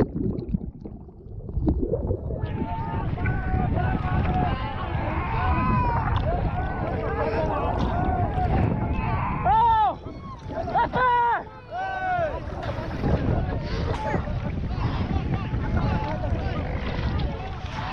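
Rough waves splash and slosh close by.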